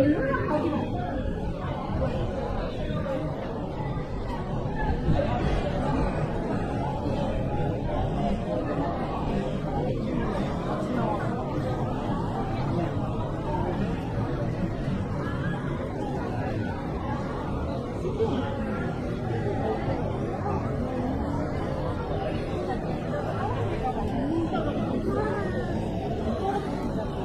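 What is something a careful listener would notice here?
A busy crowd chatters and murmurs all around outdoors.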